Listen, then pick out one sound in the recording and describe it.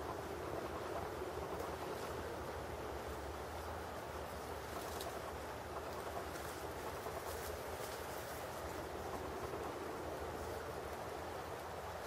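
A beaver rustles through dry twigs and leaves.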